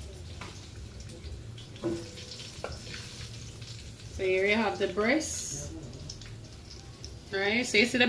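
Oil sizzles softly in a pan.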